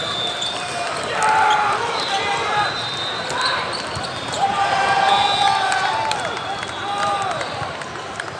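A volleyball is struck with hollow thumps.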